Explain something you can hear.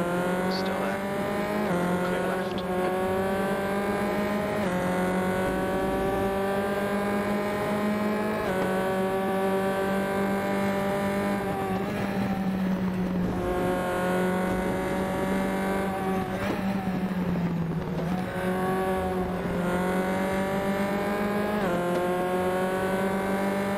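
A racing car engine whines at high revs, climbing in pitch and dropping sharply with each gear change.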